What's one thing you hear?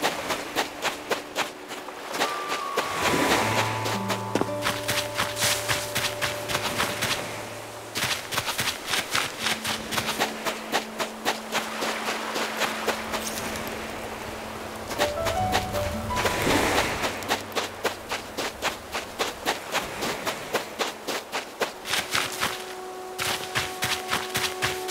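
Quick footsteps patter steadily on the ground.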